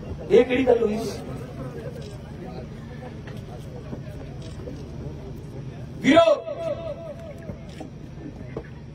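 A man speaks forcefully into a microphone, heard through loudspeakers outdoors.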